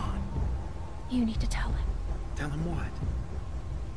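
A young man asks a short question.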